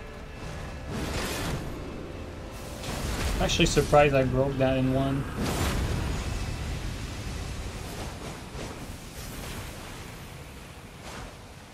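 Magical blasts whoosh and burst.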